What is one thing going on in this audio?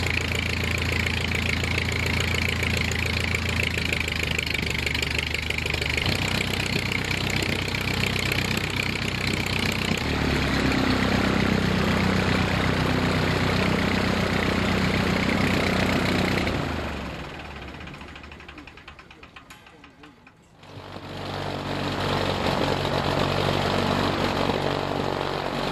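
A propeller plane's engine roars steadily up close.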